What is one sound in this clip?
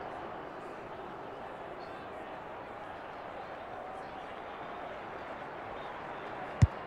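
A distant crowd murmurs steadily across an open ground.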